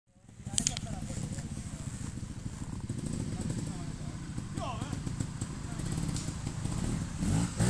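A motorcycle engine idles and revs nearby, outdoors.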